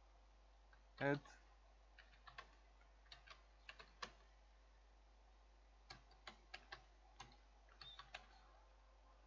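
Keys click softly on a keyboard in quick bursts.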